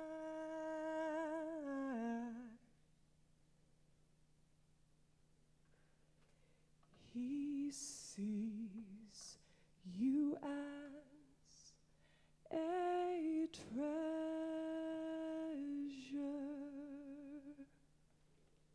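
A young woman sings through a microphone, with pauses between phrases.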